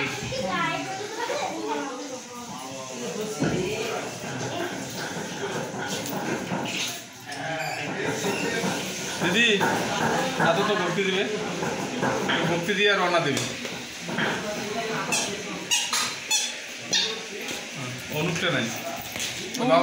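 A man chants prayers aloud nearby.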